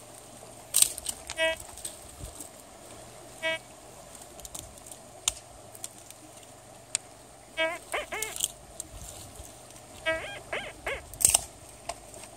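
Stones clatter as a hand scrapes through gravel.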